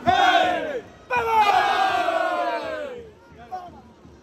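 Several men shout together in a rousing cheer.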